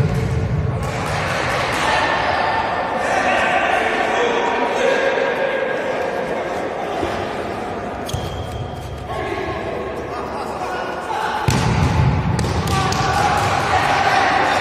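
Young men shout and call to each other in a large echoing hall.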